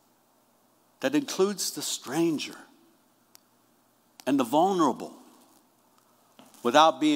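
A middle-aged man speaks calmly and slowly into a microphone in an echoing room.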